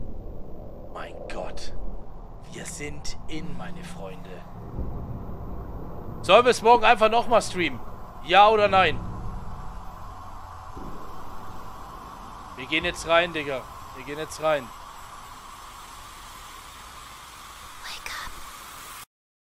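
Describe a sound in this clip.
A man speaks close to a microphone.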